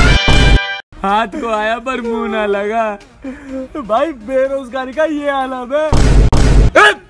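A young man wails and cries loudly close by.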